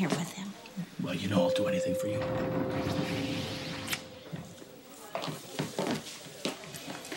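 A man speaks softly up close.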